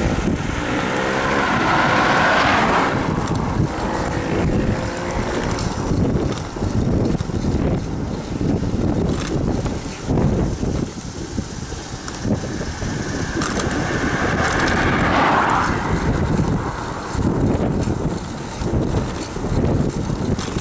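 Wind rushes and buffets past a rider on a moving bicycle.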